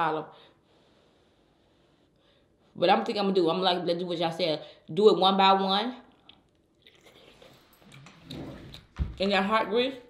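A young woman chews and smacks her lips.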